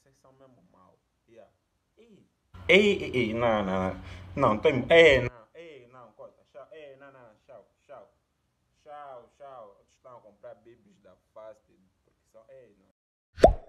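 A young man talks excitedly close to the microphone.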